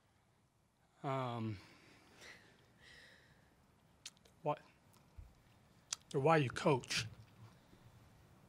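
A middle-aged man speaks haltingly into a microphone, pausing often with emotion.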